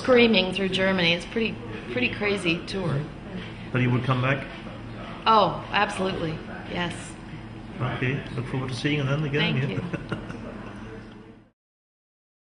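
A middle-aged woman talks calmly and warmly close to a microphone.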